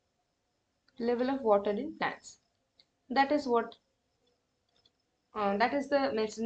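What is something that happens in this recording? A woman speaks calmly and clearly into a close microphone, in short bursts with pauses.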